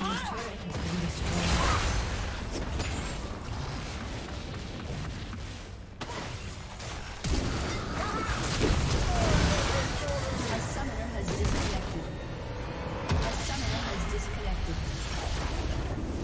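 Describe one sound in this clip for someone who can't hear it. Magic spells whoosh, crackle and boom in a busy video game battle.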